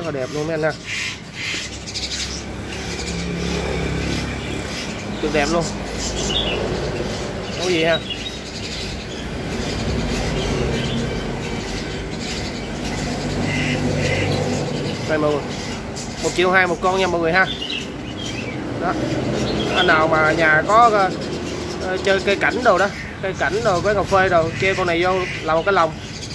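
A small bird chirps and twitters close by.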